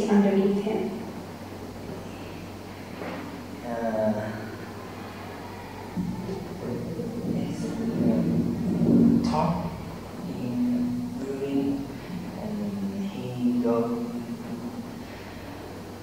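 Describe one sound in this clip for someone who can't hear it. A teenage boy speaks calmly and hesitantly nearby.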